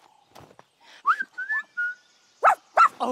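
A cartoon puppy whines and yelps in a high voice.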